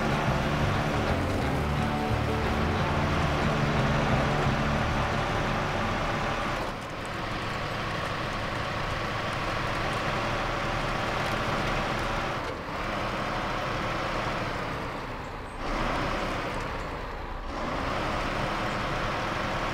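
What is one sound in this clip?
Tyres crunch over rough gravel.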